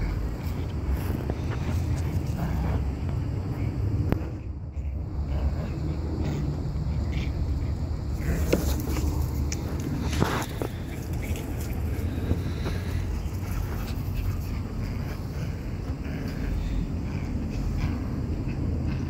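Dog paws scuffle and rustle across grass.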